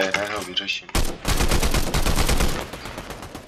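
An assault rifle fires rapid bursts of shots.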